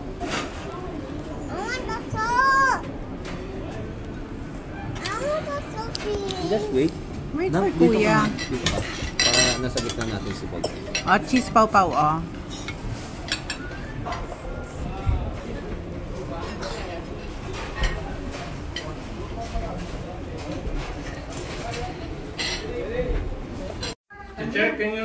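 Children and adults chatter nearby.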